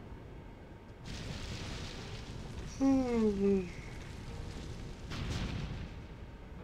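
A heavy stone door bursts apart with a rumbling crash.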